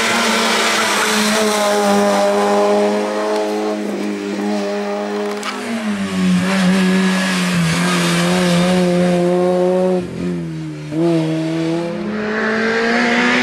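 A rally car engine revs hard and roars loudly, shifting gears.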